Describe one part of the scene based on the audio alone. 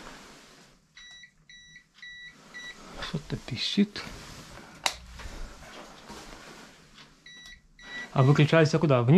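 A handheld meter beeps in short high beeps.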